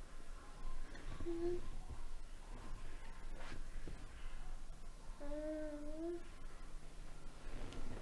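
Bedsheets rustle softly as a child shifts in bed.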